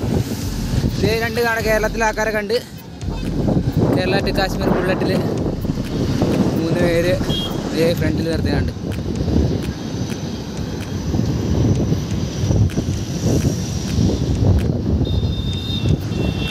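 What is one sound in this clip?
Wind rushes over the microphone.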